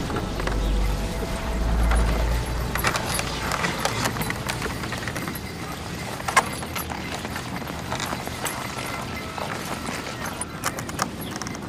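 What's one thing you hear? Sled runners scrape and crunch over snow.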